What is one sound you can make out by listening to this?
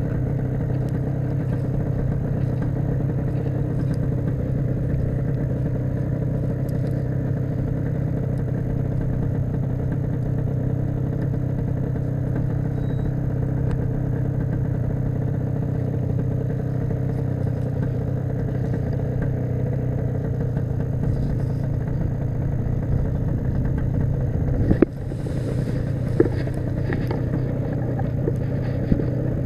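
Wind rumbles steadily across an open outdoor space.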